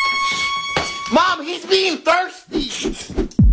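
A young man shouts wildly, close by.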